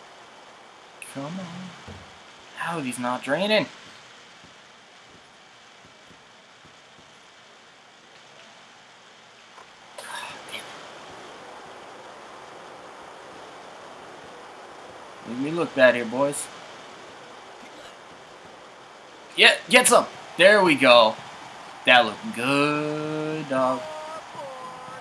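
A man talks in short bursts, close to a microphone.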